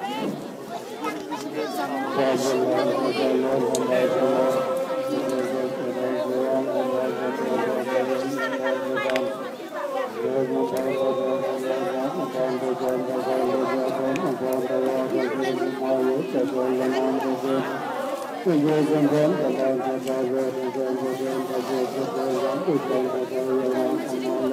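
A group of women sing together outdoors in a steady chant.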